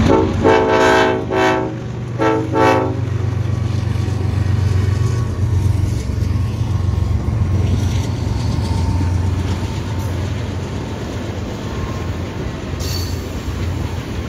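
Diesel locomotives rumble and drone as they pass close by.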